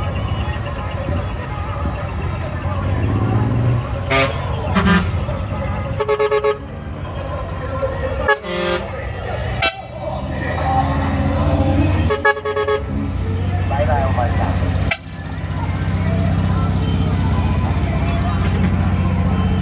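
Truck engines rumble steadily nearby.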